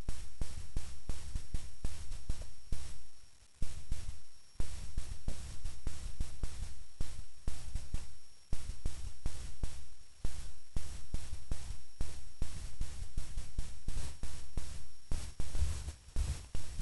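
Goats tear and crunch grass nearby.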